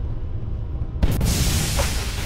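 A loud blast bursts out nearby with a rushing hiss.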